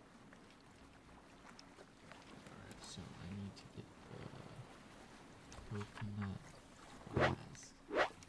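Waves lap gently against a shore.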